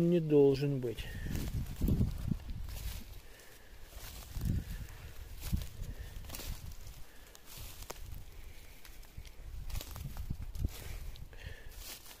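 Footsteps rustle through dry grass and leaves.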